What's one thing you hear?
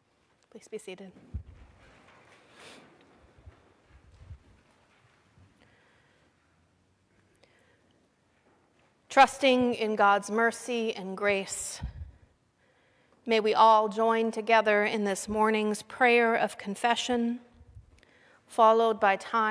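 A middle-aged woman speaks calmly into a microphone, with pauses, in an echoing hall.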